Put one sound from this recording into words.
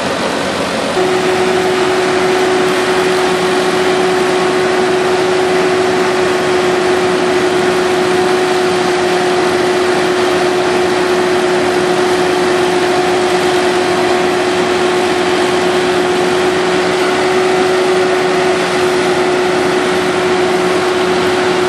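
A heavy transporter's engine drones steadily.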